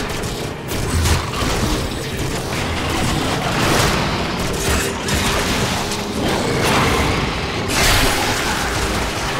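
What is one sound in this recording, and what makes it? Explosions burst with fiery whooshes.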